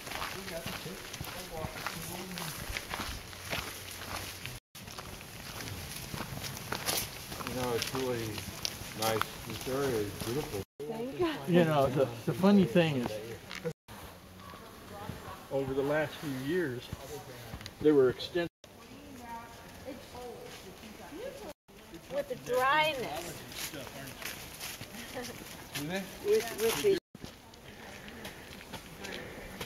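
Footsteps crunch on a leafy dirt path.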